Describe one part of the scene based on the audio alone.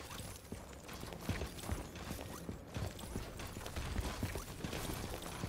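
Quick footsteps thud on stone.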